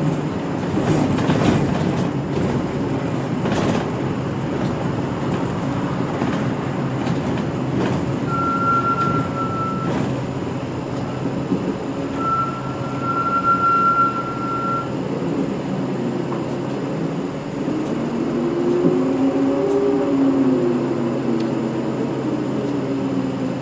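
Tyres roll over the road surface with a steady rumble.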